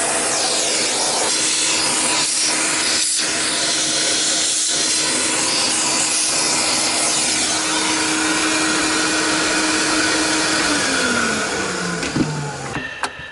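A vacuum cleaner roars steadily, then winds down and stops.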